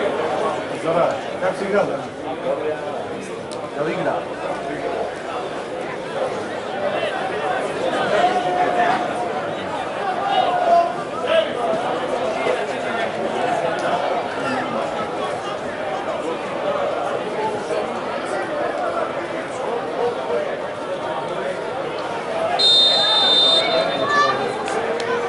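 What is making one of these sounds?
Men shout to each other across a large outdoor pitch.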